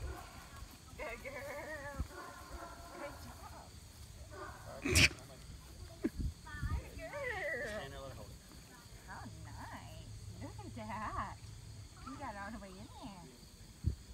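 A young woman talks with animation.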